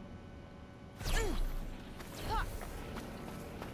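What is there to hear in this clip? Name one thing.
A loud magical whoosh sweeps down twice.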